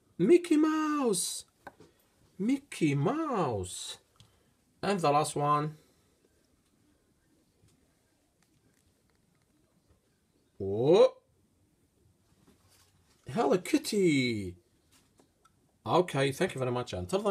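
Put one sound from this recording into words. A plastic toy figure taps down on a hard tabletop.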